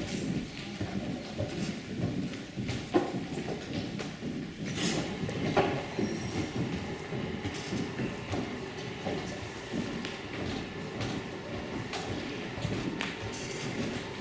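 Footsteps knock on a wooden stage in a large echoing hall.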